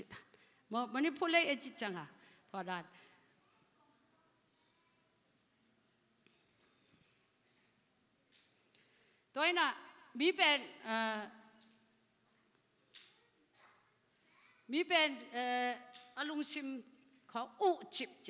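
A middle-aged woman speaks with feeling into a microphone, pausing between phrases, heard through loudspeakers.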